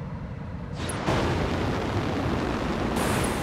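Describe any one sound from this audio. A low, steady roar like a storm wind swirls.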